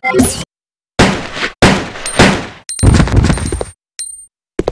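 Gunshots boom loudly, each one ringing out.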